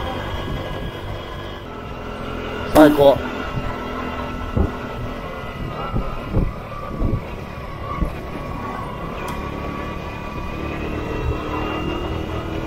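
A small motorbike engine hums steadily while riding.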